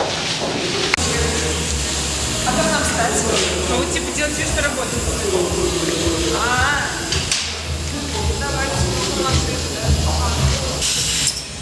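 A packaging machine hums and clatters steadily.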